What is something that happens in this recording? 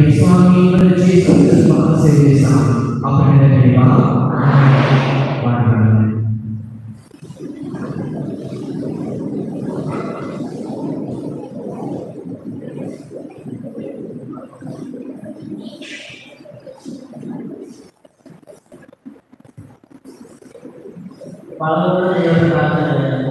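A man chants loudly through a microphone in an echoing hall.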